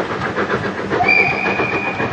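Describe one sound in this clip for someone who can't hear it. A steam train's whistle blows a long, steady note.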